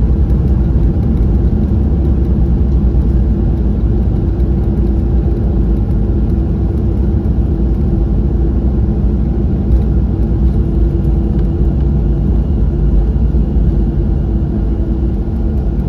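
An airliner's engines roar steadily, heard from inside the cabin.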